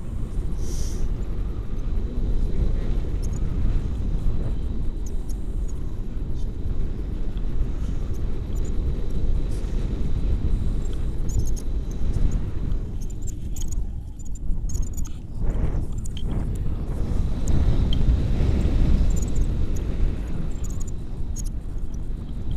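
Strong wind rushes and buffets loudly against the microphone.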